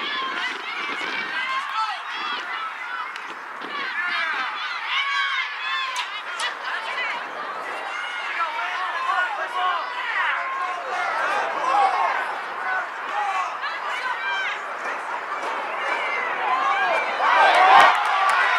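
Young women shout to each other across an open field, far off.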